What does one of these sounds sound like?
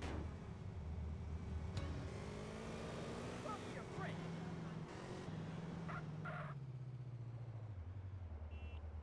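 A motorcycle engine revs, then slows and drops in pitch.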